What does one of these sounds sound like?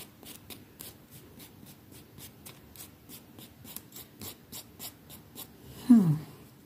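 Fingernails tap and click lightly on a thin stick, very close by.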